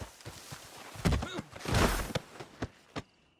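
A body thuds heavily onto the ground.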